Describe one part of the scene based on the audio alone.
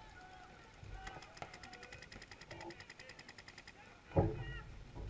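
Paintball guns fire in rapid bursts.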